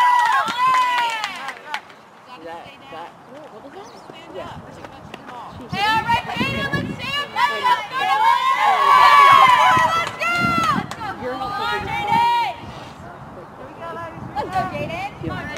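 Young women shout and cheer loudly outdoors.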